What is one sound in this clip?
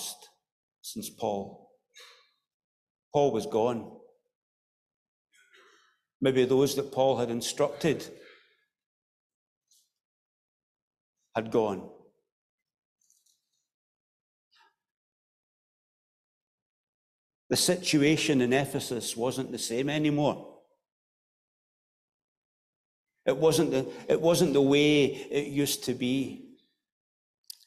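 A middle-aged man speaks slowly and solemnly into a microphone, with long pauses, in a reverberant hall.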